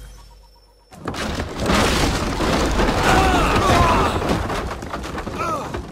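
Wooden planks crash and splinter.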